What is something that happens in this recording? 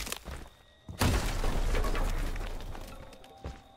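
A wooden door splinters and crashes apart.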